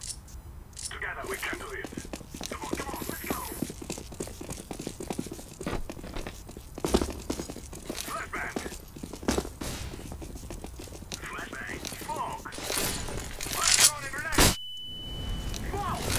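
Quick footsteps run across hard ground.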